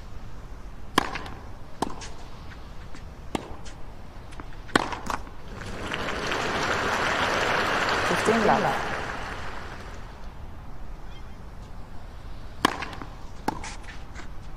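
A tennis ball is struck sharply by a racket, back and forth.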